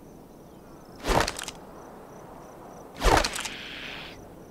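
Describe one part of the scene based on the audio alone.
A pistol clatters as it is picked up off a table.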